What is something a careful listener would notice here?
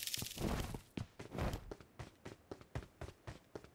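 Quick footsteps patter on the ground in a game.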